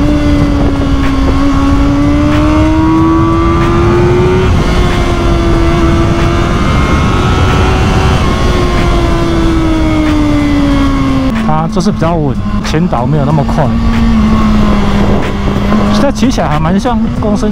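A motorcycle engine hums steadily, its pitch rising and falling as it changes speed.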